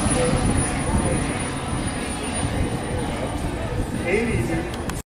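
A model jet engine whines with a steady high hiss.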